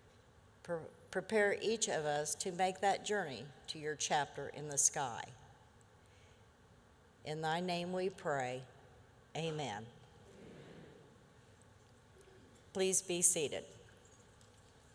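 An older woman speaks slowly and clearly through a microphone, with pauses.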